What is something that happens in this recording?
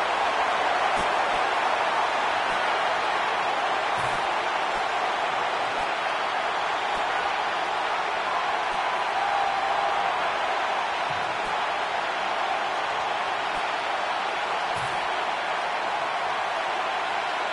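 A large crowd roars in a steady wash of noise.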